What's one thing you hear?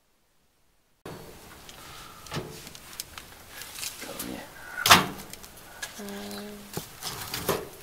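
A wood fire crackles inside a metal stove.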